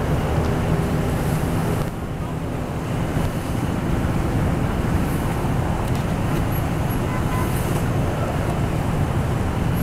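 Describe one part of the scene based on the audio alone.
A car engine hums as it rolls slowly past.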